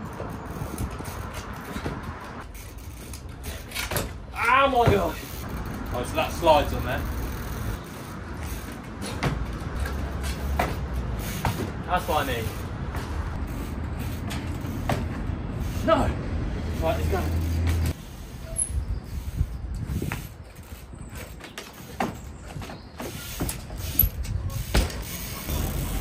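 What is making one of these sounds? Bicycle tyres thud and knock onto wooden pallets.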